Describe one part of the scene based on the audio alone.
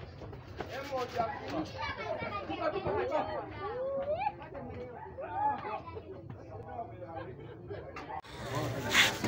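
Young boys shout and talk excitedly nearby.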